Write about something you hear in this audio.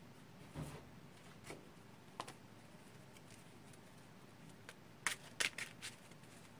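Cards shuffle and snap in a person's hands, close by.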